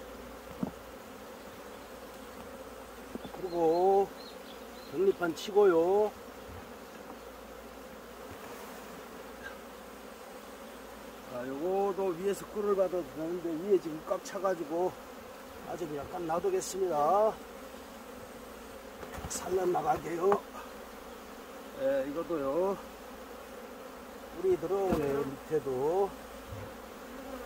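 Bees buzz steadily around an open hive.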